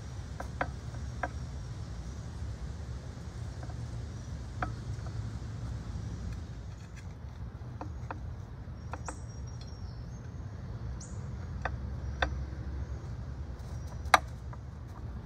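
Metal shears snip with sharp clicks.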